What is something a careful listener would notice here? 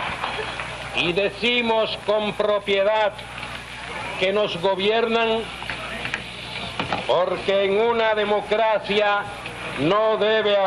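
A man gives a speech with force through a loudspeaker, echoing outdoors.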